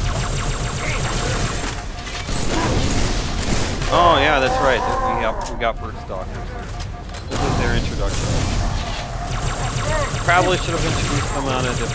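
An energy weapon fires with electric zaps.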